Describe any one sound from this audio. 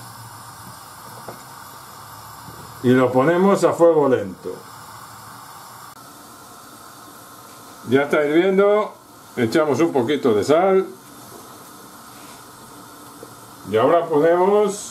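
Water bubbles and boils in a pot.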